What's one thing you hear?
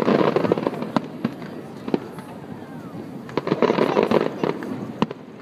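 Fireworks bang sharply in the distance.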